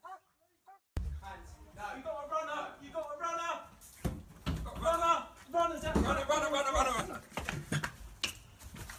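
A man shouts urgently nearby.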